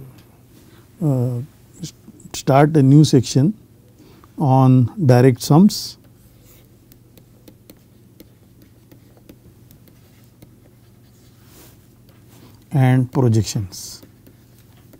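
A middle-aged man speaks calmly and slowly into a close microphone.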